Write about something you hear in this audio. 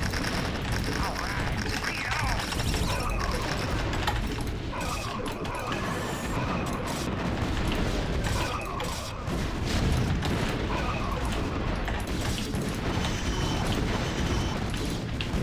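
Gunfire and explosions from a battle rattle and boom continuously.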